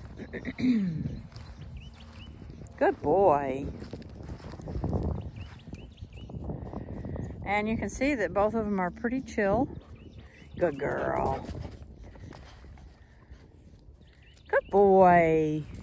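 Dogs' paws rustle through grass as they scamper about.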